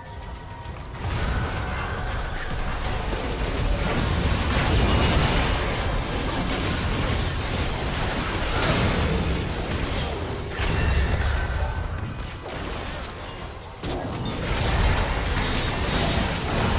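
Game battle effects crackle and boom in a fast fight.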